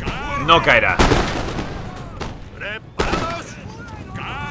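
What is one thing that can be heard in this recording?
A volley of muskets fires with loud cracks.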